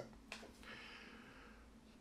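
A hand slides a card across a table.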